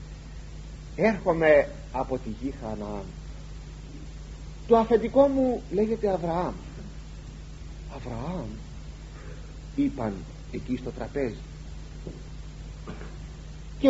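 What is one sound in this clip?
An elderly man speaks calmly and slowly, close to a microphone.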